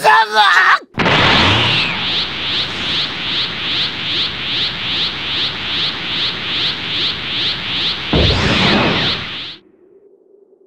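An energy charge roars with a rapid, steady pulsing.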